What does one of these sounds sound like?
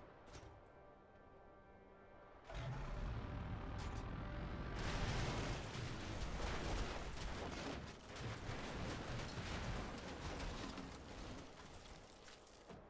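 A heavy armoured vehicle's engine rumbles as it drives.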